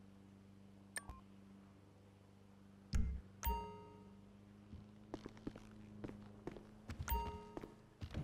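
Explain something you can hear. A menu chimes with short beeps.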